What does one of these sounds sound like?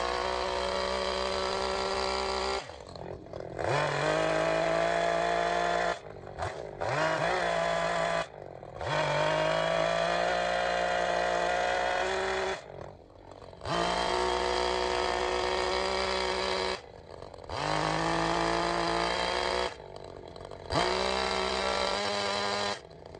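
A chainsaw engine roars loudly, revving up and dropping back to idle again and again.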